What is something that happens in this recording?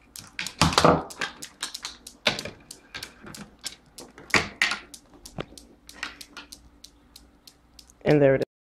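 Small balls clatter and tick along a wooden stick track.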